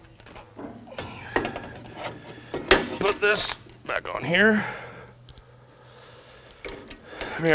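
A hand pump clicks and clanks as it is worked.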